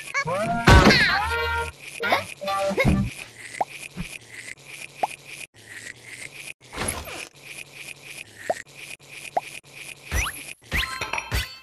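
A toothbrush scrubs teeth in quick, repeated strokes.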